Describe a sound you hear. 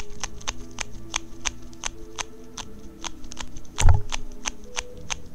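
A soft rubber toy squishes and squeaks as hands squeeze it.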